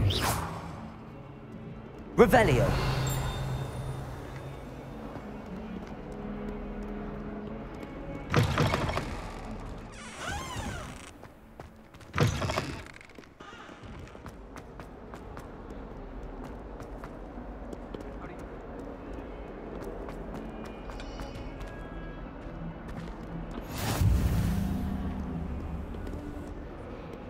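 Footsteps patter quickly on stone floors.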